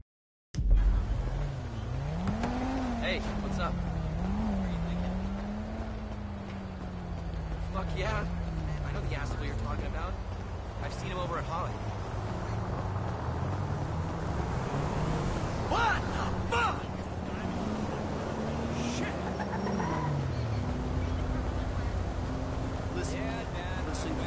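A car engine hums and revs nearby.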